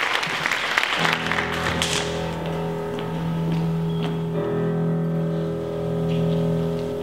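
A piano plays sustained chords in a large hall.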